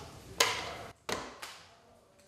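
A hand mixer knocks down onto a stone counter.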